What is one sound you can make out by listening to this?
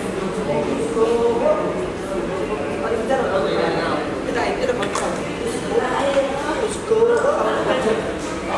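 A man talks nearby in a low voice.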